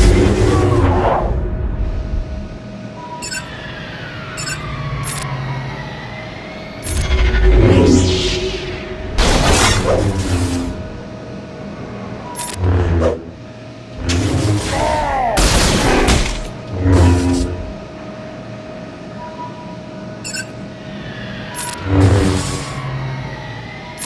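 Lightsabers hum and clash in bursts of game battle sounds.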